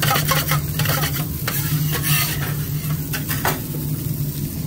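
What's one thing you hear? A metal spatula scrapes and taps against the griddle.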